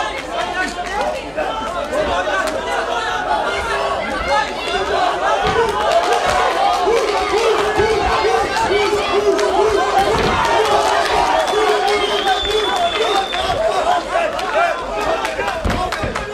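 A large crowd cheers and shouts loudly.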